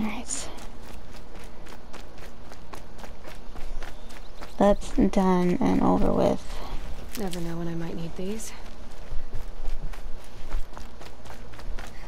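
Quick footsteps run over grass and dry ground.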